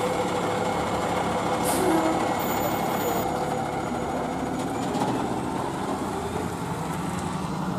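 A diesel fire engine rumbles as it pulls away.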